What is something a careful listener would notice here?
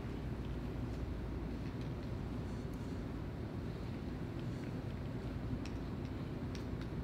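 A plastic bottle crinkles and clicks in a man's hands.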